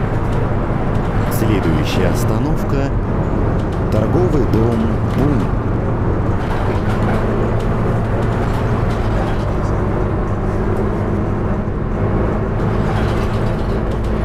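A city bus diesel engine drones as the bus cruises along a road.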